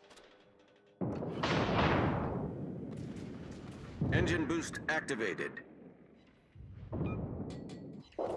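Heavy ship guns fire with deep, rolling booms.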